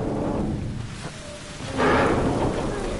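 A heavy thud lands on metal grating.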